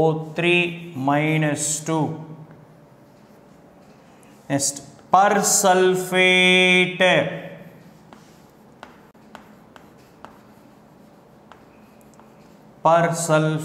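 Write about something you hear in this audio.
A man speaks clearly in short bursts with pauses, close by.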